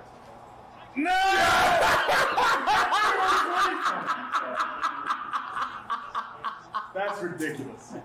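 Two men shout and laugh excitedly.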